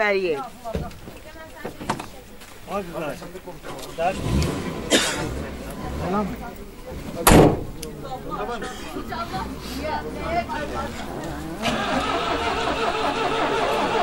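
Several men and women talk close by, with animation.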